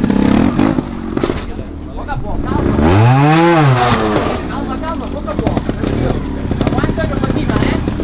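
A motorcycle engine idles and sputters close by.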